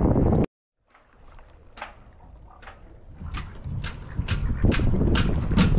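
Small waves lap and splash against a boat hull close by.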